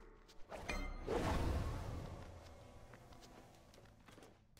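A magical whoosh rumbles and slowly fades.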